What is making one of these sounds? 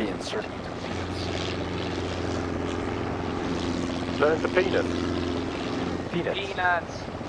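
A helicopter engine hums steadily.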